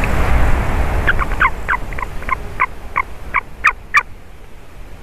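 A young bird gives a quick run of high, sharp calls.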